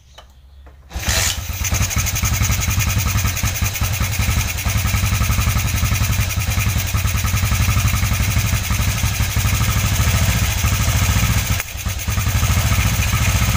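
A small motorcycle engine starts and idles with a loud, steady rattling putter.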